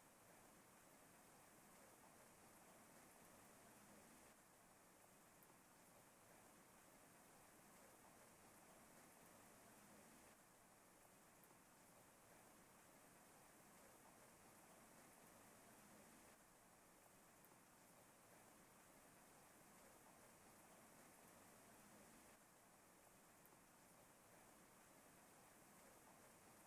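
Rain falls steadily and softly.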